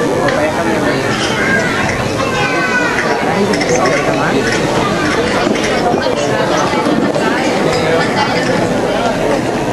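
A folk string ensemble of acoustic guitars is strummed and plucked.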